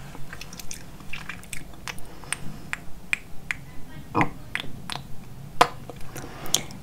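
A young woman makes soft, wet mouth sounds and clicks very close to a microphone.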